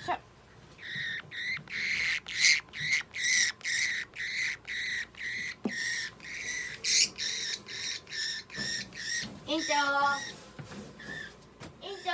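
A budgie squawks and screeches in rapid, repeated bursts close by.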